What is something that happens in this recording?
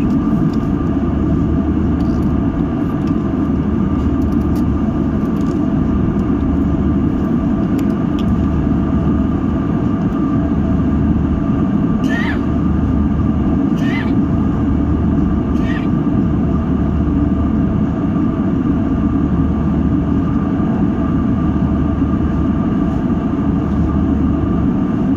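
Jet engines roar steadily in a deep, constant drone, heard from inside an airliner cabin.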